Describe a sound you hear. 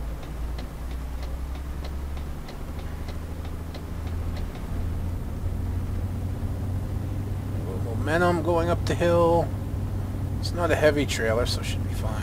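Windshield wipers sweep back and forth.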